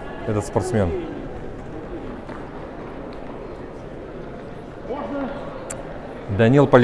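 A man speaks briefly nearby in a large echoing hall.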